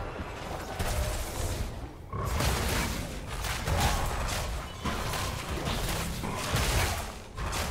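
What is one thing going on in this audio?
Game spell effects burst and crackle in quick succession during a fight.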